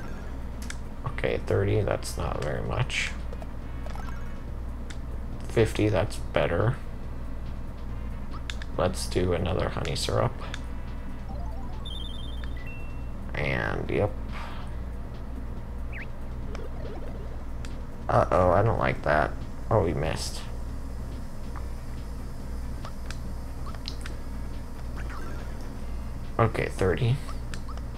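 Short electronic game sound effects blip and chime.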